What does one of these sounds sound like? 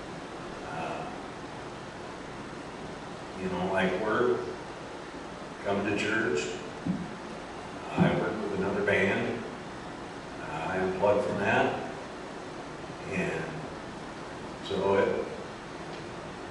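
An elderly man speaks slowly into a microphone, pausing between phrases.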